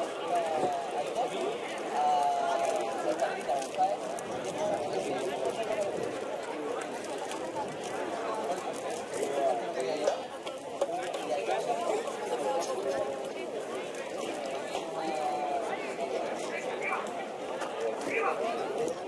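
A crowd of people chatter and call out outdoors, a little way off.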